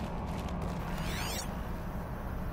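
A shimmering electronic sweep rings out briefly.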